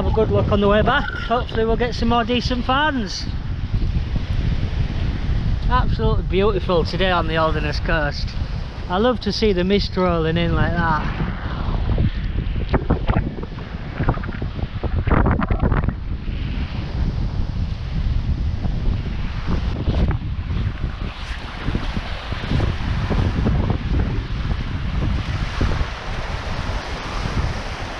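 Small waves wash and break steadily onto the shore.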